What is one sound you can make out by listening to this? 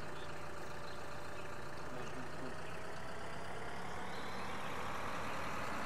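A tractor engine rumbles steadily and speeds up.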